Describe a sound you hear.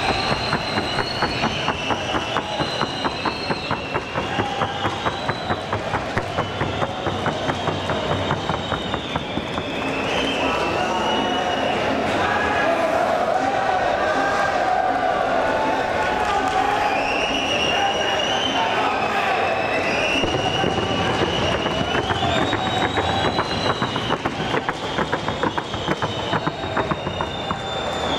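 A horse's hooves beat a fast, even rhythm on a hard floor.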